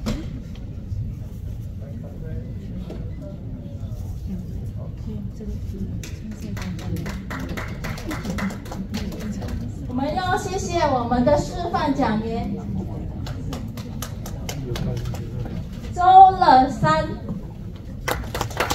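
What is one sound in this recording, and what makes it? A crowd murmurs quietly in the room.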